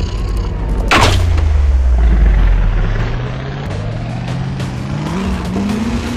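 A tiger lets out a low, drawn-out groan.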